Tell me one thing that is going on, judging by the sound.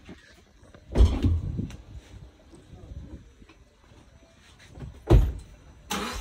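A car door shuts with a heavy thud.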